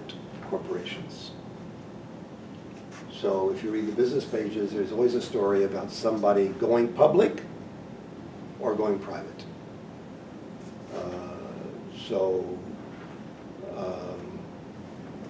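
An older man speaks calmly, pausing between phrases.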